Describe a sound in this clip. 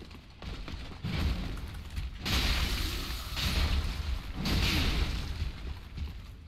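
Weapons whoosh and strike in a fight.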